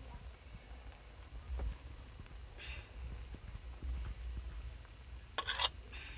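A spoon scrapes against a metal bowl.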